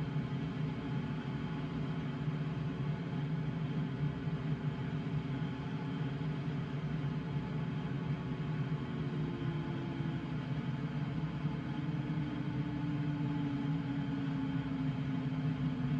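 Wind rushes steadily over a glider's canopy in flight.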